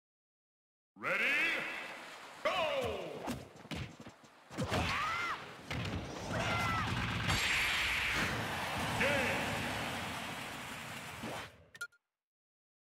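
Fast video game battle sounds clash, whoosh and chirp.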